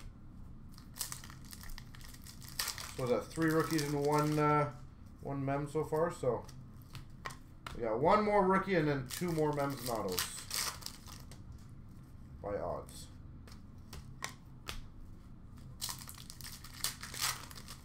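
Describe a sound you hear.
Cards rustle and tap as hands sort through them.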